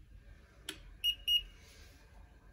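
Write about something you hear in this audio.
A handheld thermometer beeps briefly.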